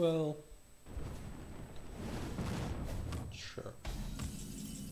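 A magic bolt whooshes and bursts.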